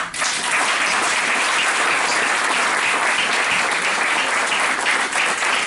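An audience claps loudly and steadily in a room.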